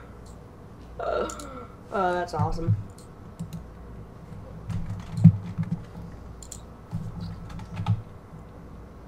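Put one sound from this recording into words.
A boy talks quietly into a microphone.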